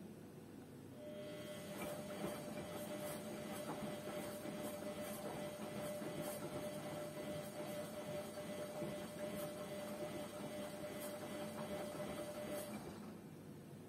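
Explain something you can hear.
Water sloshes inside a washing machine drum as it turns.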